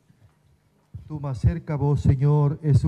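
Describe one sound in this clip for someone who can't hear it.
A group of people begins singing loudly together.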